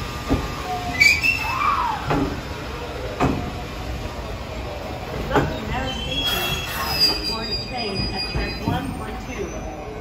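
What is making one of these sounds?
A train hums and squeals as it pulls away.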